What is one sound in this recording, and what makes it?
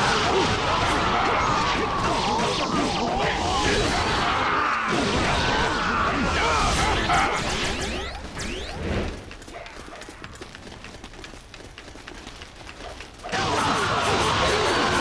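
Swords slash and strike rapidly in a loud battle.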